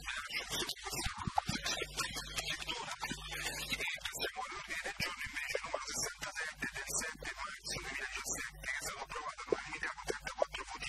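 An older man reads out through a microphone.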